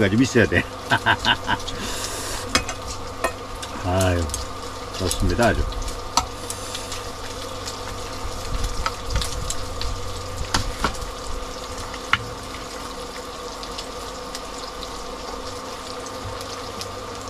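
Metal utensils clink and tap against dishes.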